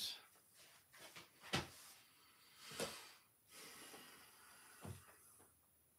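Cards shuffle and tap on a table.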